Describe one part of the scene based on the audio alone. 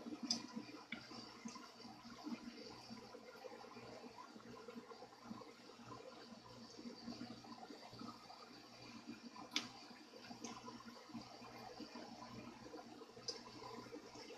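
Small metal clicks and taps come from a guitar's tuning pegs being worked on.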